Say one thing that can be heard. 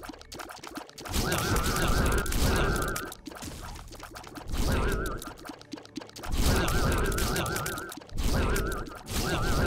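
Video game shots pop and splash in rapid bursts.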